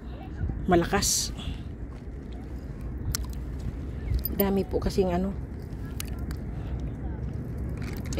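A hand splashes gently in shallow water.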